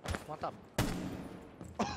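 A rifle fires a short burst of gunshots.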